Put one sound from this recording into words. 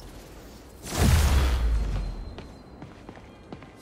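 A bright, shimmering whoosh swells up and fades away.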